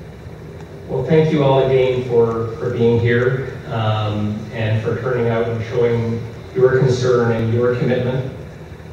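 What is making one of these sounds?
An older man speaks calmly into a microphone over a loudspeaker in a large room.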